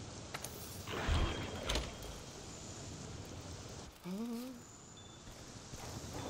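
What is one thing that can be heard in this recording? A torch fire crackles softly.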